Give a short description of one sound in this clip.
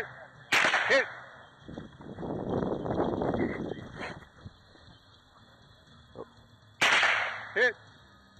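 A .22 rimfire semi-automatic rifle fires sharp shots outdoors.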